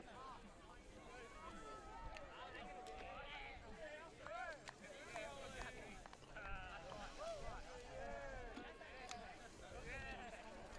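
Young men and women shout and call out to each other outdoors.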